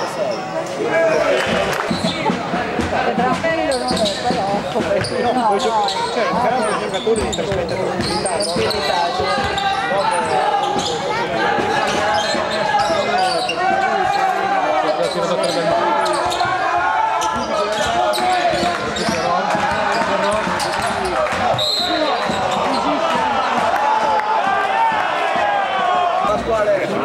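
A large crowd of fans chants and sings loudly in an echoing hall.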